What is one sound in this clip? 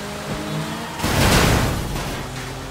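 A car crashes into a post with a loud thud.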